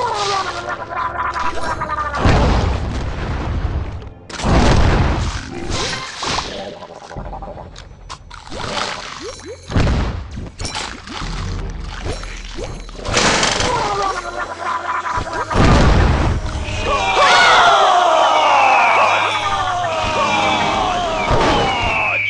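A shark chomps and crunches loudly.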